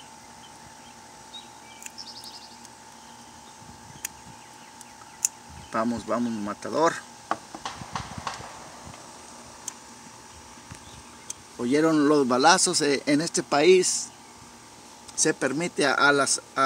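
Metal pliers click as they grip a fuel line.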